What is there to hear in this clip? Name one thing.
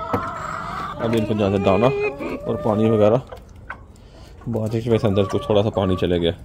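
A rooster crows loudly close by.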